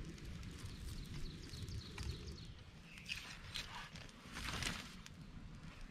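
Twigs snap and crackle as they are laid on a fire.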